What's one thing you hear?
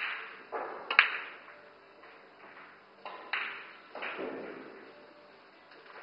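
Pool balls knock against each other and thud against a cushion.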